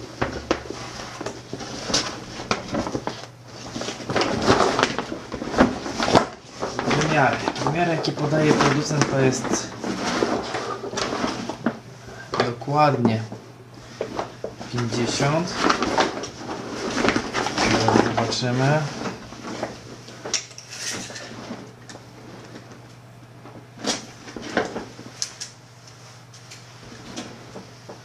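A waterproof bag's stiff fabric crinkles and rustles as it is handled.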